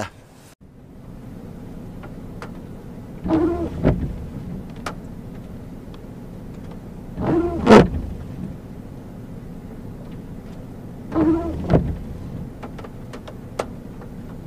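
Rain patters softly on a car's windshield.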